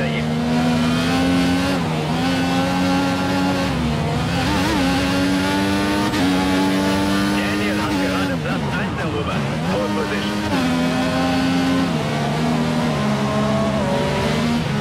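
A racing car engine screams loudly, rising through the gears and dropping sharply under braking.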